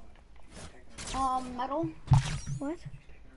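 A heavy hammer swings and strikes with a loud crash.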